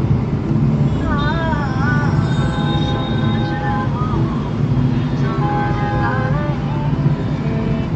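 Vehicle horns honk in the traffic outside.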